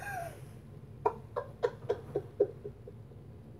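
A young woman giggles softly nearby.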